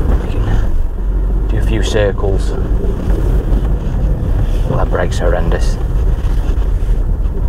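A car engine and road noise rumble steadily.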